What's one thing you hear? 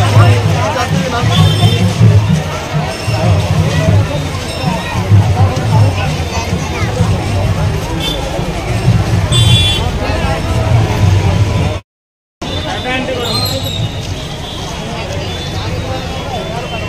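A large crowd of men and women chatters and shouts outdoors.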